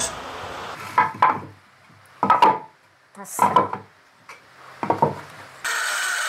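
Wooden boards knock against each other as they are set into a wooden frame.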